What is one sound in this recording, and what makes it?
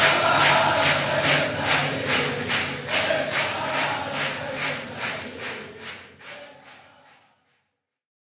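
A crowd claps in a steady rhythm in a large echoing hall, fading away at the end.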